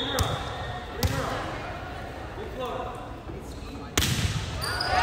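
A volleyball is struck with a sharp slap in an echoing gym.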